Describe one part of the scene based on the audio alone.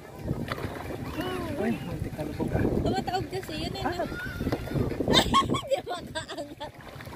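Young people talk and laugh excitedly close by, outdoors.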